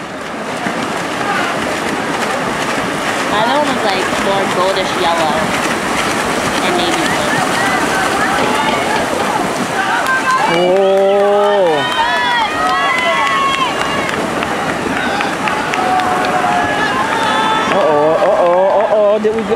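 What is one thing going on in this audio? Swimmers splash and churn through water.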